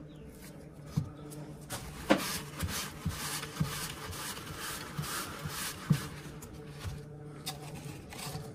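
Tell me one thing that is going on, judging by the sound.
Small objects tap and click on a hard surface.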